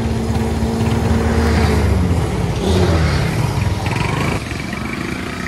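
A motorbike engine idles close by.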